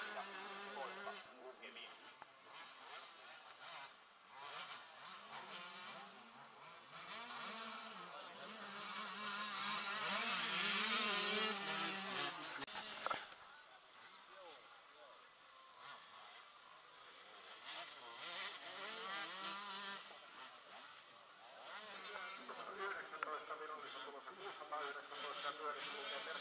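Motocross motorcycle engines rev and whine, rising and falling in pitch, growing loudest as a bike passes close.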